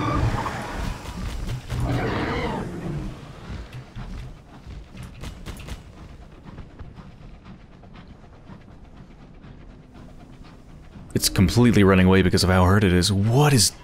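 A submarine's engine hums low and steadily underwater.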